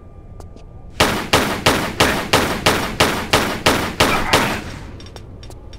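Pistols fire in a fast, loud string of shots.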